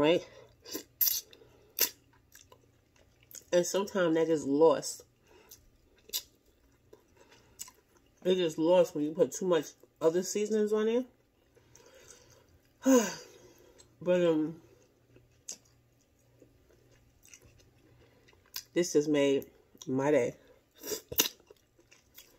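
A woman chews and slurps food noisily.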